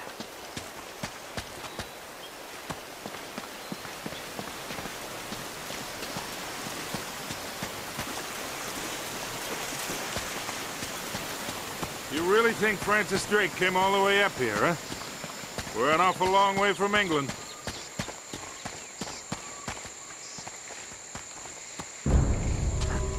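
Footsteps crunch on the ground at a steady pace.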